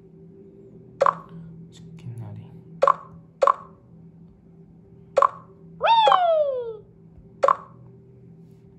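A tablet game plays short bright chimes as buttons are tapped.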